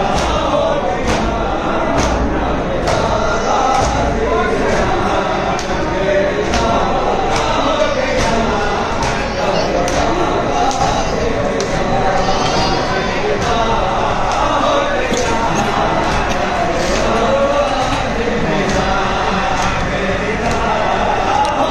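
Men beat their chests in a steady rhythm.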